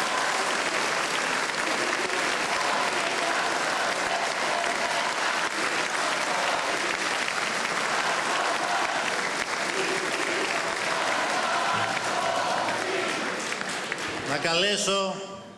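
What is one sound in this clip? A large crowd applauds and cheers loudly in a big hall.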